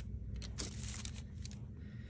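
A plastic sleeve crinkles under pressing hands.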